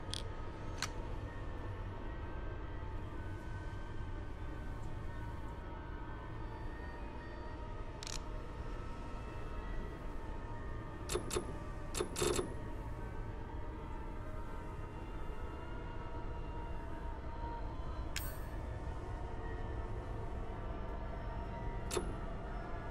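Soft electronic menu clicks sound now and then.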